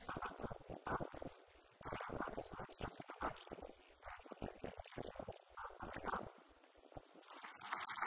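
A man speaks with animation into a microphone, heard through a loudspeaker.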